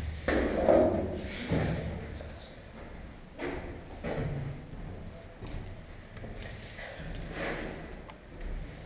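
Footsteps thump and clank on a hollow metal floor in an echoing metal space.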